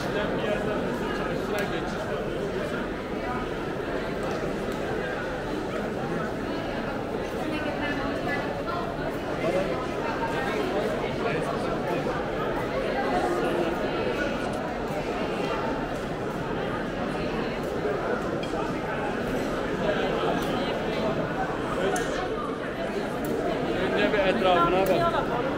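A crowd of people chatters and murmurs all around in a large echoing hall.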